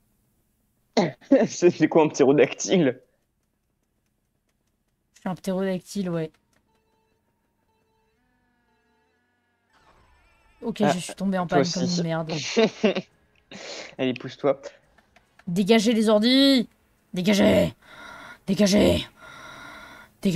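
An elderly woman talks with animation, close to a microphone.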